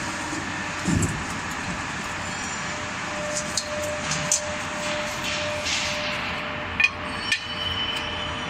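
Metal clanks sharply a few times.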